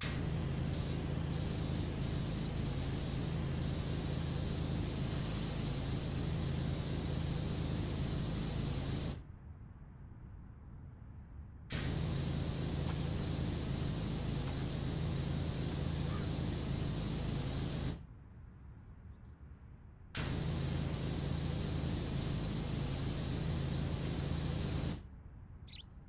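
A pressure washer sprays water with a loud, steady hiss that stops and starts.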